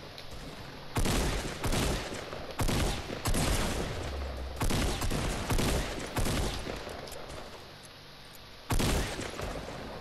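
A video game shotgun fires several blasts.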